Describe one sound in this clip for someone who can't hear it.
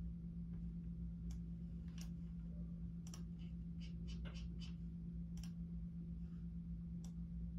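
Keys on a keyboard click and clack as fingers type.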